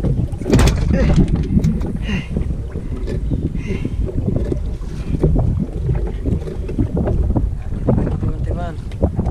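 A man handles a fishing line with small clicks and rustles close by.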